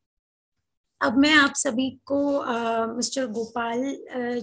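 A young woman speaks steadily over an online call.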